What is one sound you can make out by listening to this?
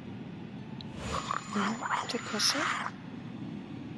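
A creature snarls and shrieks up close.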